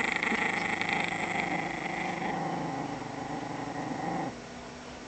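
A small dog gnaws and scrapes its teeth on a stick.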